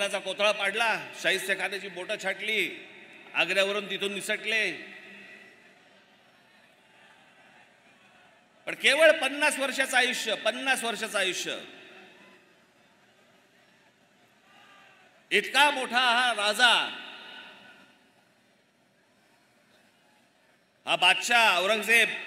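A man speaks forcefully in short bursts through loudspeakers, his voice echoing outdoors.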